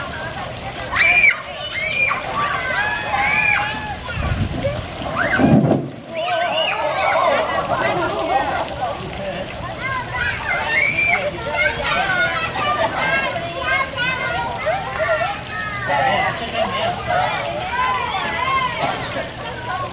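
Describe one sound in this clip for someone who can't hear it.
Water splashes as children wade and kick in a shallow pool.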